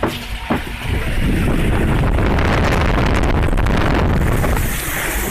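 Water rushes loudly as a boat speeds down a flume.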